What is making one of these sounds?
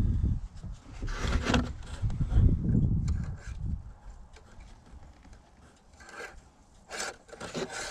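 A metal dipstick scrapes and rattles as it slides into its tube.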